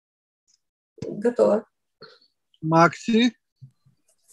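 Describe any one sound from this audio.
A woman speaks close by, with animation.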